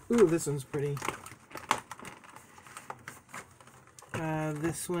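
Packaging rustles and crinkles in a woman's hands.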